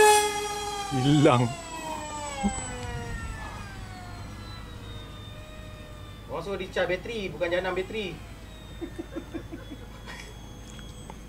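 A small model plane whines overhead, its pitch dropping as it flies past and away.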